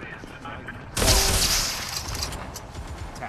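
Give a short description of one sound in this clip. An explosion bursts with a loud blast.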